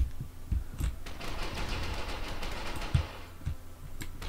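A submachine gun fires a burst.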